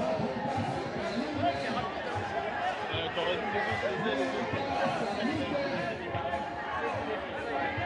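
A large crowd of marchers chatters and calls out all around, outdoors.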